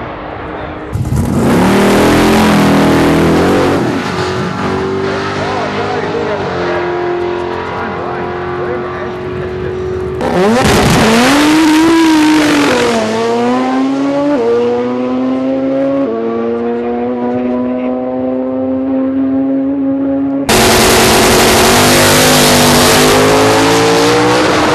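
Tyres squeal and screech while spinning on the track.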